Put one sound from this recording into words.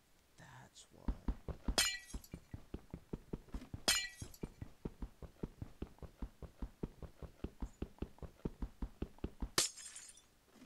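A pickaxe chips rapidly and steadily at ice.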